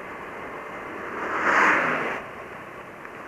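A bus passes by close.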